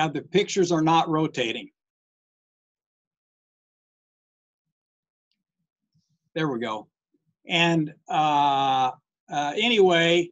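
A man speaks calmly over an online call, pausing between phrases.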